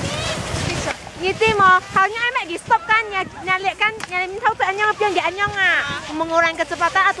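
A young child whines and cries nearby.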